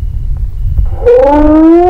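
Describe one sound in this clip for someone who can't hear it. A man howls loudly close by.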